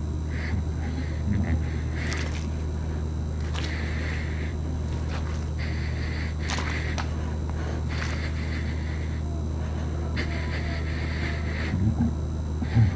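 Fluorescent lights hum steadily in a low drone.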